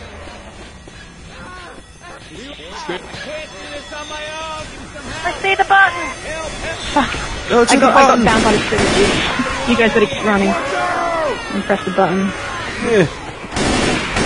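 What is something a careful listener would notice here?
Young people talk with animation over an online call.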